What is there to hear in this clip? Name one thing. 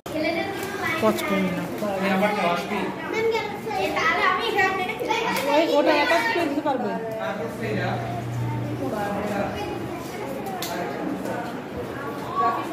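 Children chatter and talk nearby.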